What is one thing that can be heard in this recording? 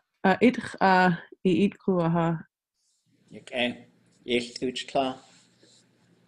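A man reads aloud over an online call.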